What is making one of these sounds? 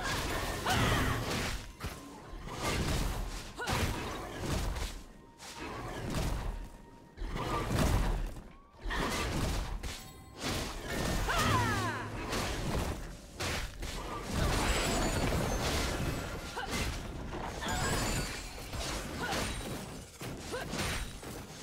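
Game characters clash in a fight, with spell effects and hits bursting in quick succession.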